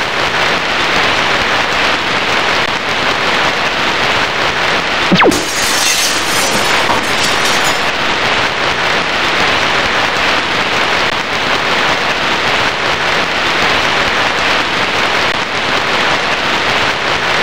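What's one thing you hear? Rain falls steadily and heavily.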